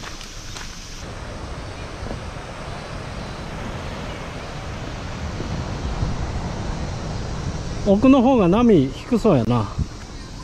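Waves wash onto a pebble beach.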